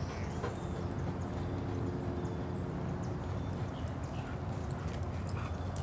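A dog's paws patter over dry leaves.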